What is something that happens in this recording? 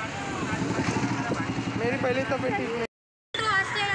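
Motorbike engines idle and rumble in street traffic.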